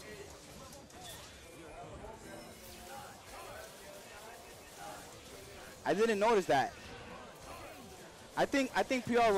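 Rapid punches and energy blasts land in a video game fight.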